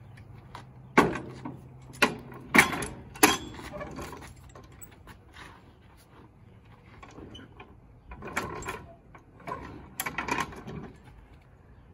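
A floor jack handle clanks and clicks as it is pumped.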